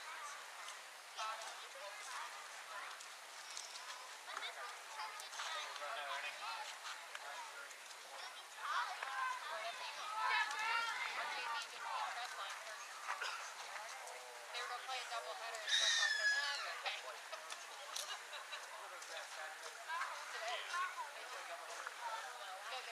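A group of young people talk and call out at a distance outdoors.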